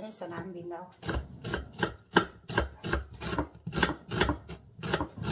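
A knife chops through an onion on a wooden cutting board.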